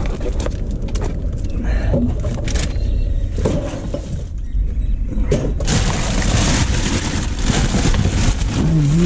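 Loose boards and debris clatter and knock.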